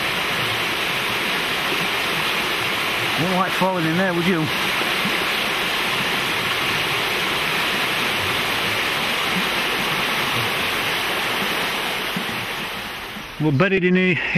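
A swollen river rushes loudly over rapids.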